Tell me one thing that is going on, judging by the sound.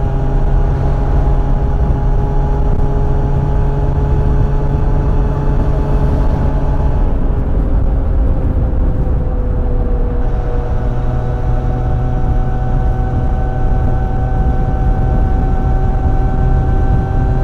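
A motorcycle engine drones steadily at high speed, its pitch dipping briefly and then settling.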